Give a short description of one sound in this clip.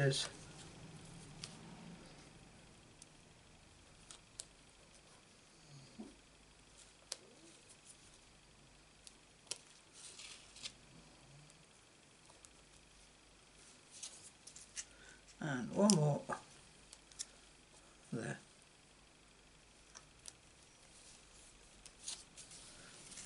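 Fingers tap and press on card, making light clicks.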